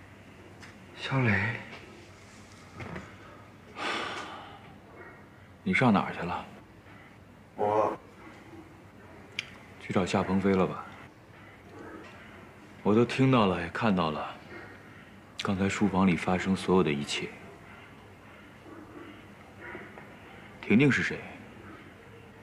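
A middle-aged man speaks in a hurt, strained voice, close by.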